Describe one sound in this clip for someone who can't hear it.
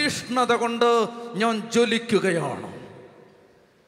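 A man preaches forcefully into a microphone, his voice ringing through a loudspeaker in an echoing hall.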